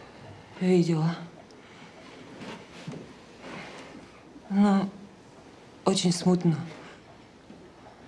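A young woman speaks quietly and hesitantly nearby.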